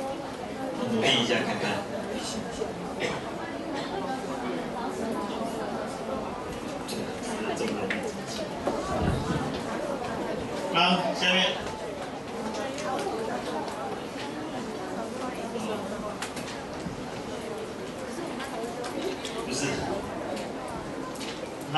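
A middle-aged man speaks steadily through a microphone in a room with some echo.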